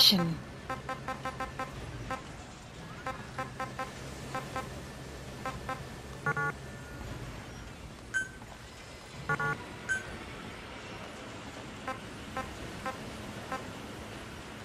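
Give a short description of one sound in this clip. Short electronic menu beeps sound as options are scrolled through.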